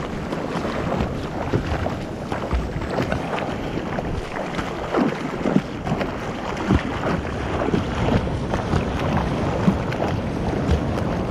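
Foamy water rushes and churns close by.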